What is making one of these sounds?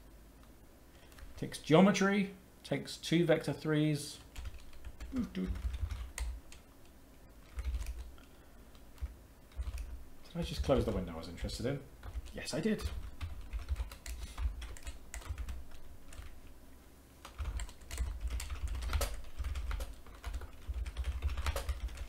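Computer keys clatter under quick typing.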